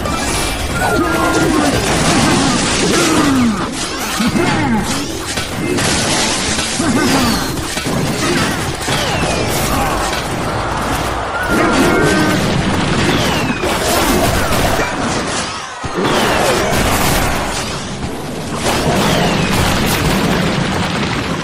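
Cartoonish battle sound effects clash, thud and burst continuously.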